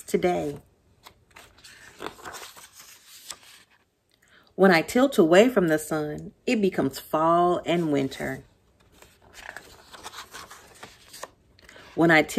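Paper pages rustle as they turn.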